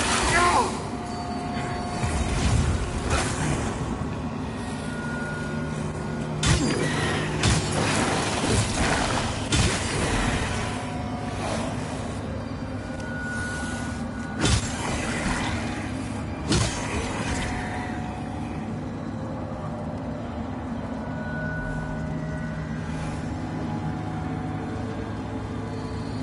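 Heavy footsteps crunch over rough ground.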